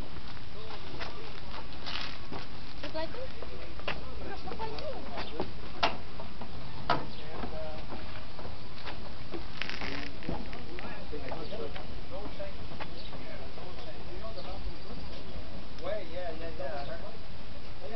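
Several adults chat nearby outdoors.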